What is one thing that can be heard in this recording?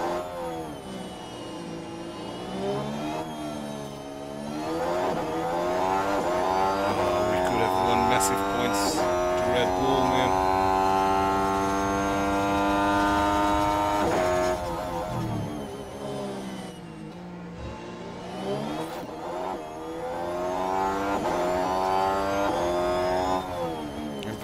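A racing car engine screams at high revs, rising and falling through gear changes.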